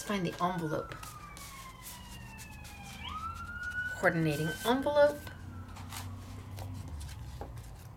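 Sheets of card rustle and flap as they are handled.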